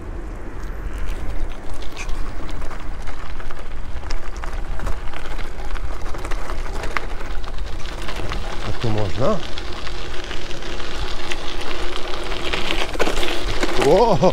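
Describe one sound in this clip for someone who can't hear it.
Bicycle tyres crunch and rattle over gravel.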